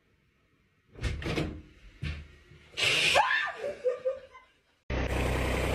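A young woman screams in fright.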